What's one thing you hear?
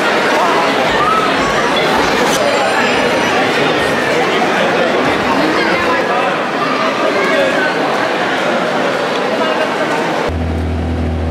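A crowd of people chatters in a large echoing hall.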